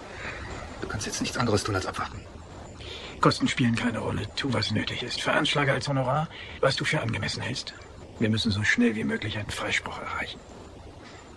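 An elderly man speaks calmly and quietly.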